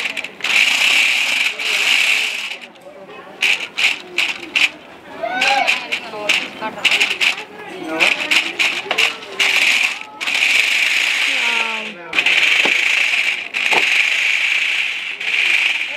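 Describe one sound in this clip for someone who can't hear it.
A toy car's electric motor whirs loudly in bursts.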